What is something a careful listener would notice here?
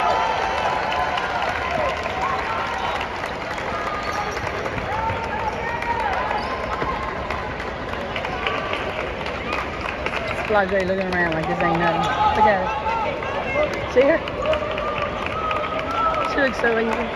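Basketballs bounce rapidly on a hardwood floor.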